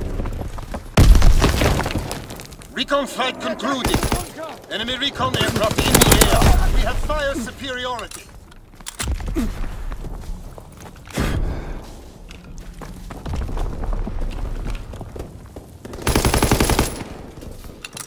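A rifle fires in rapid bursts of gunfire.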